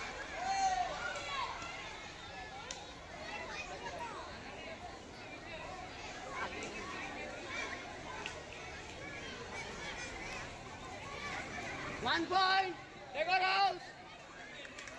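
Teenage boys shout and call out excitedly outdoors.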